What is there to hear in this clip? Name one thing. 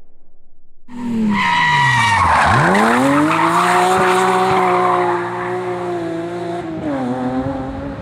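A rally car speeds past at full throttle, its engine roar rising and falling.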